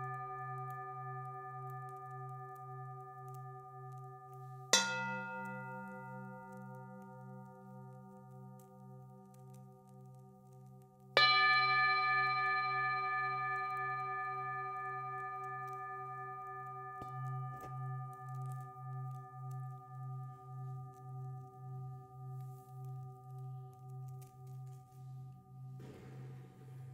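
Singing bowls ring with long, shimmering tones that slowly fade.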